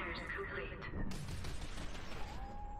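A rifle fires a burst of loud shots.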